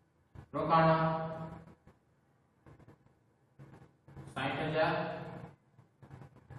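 A man speaks calmly nearby, in a slow lecturing tone.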